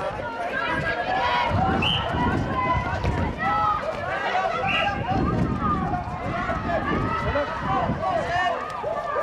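Sneakers patter and squeak on a hard outdoor court.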